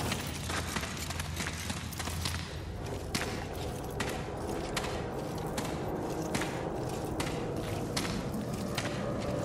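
Heavy footsteps thud steadily on rocky ground.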